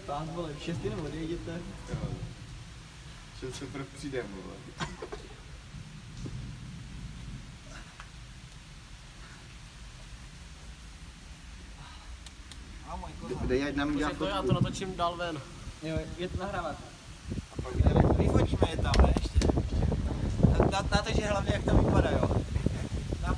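Men talk and laugh with animation close by.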